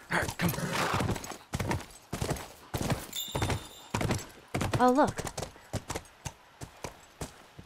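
A horse's hooves clop steadily on hard ground.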